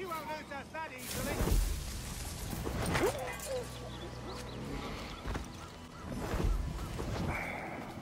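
Leaves and bushes rustle as someone pushes through dense undergrowth.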